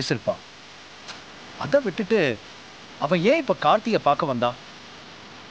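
An older man speaks with feeling, close by.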